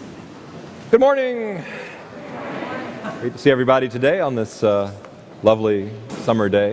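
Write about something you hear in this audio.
A man speaks calmly through a microphone in a large echoing church.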